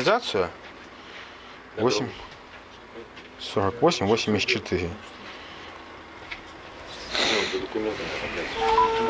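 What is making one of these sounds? A man speaks nearby in short phrases.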